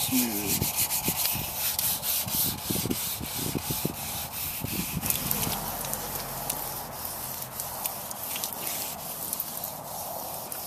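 Water runs and splashes from a hose.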